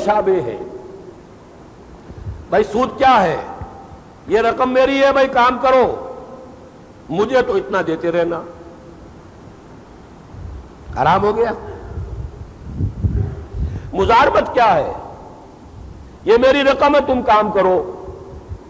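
An elderly man speaks with animation through a microphone, in short bursts with pauses.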